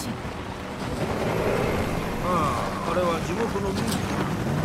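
A man answers in a low voice.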